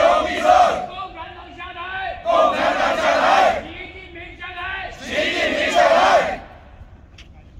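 A group of people chant loudly together in bursts outdoors.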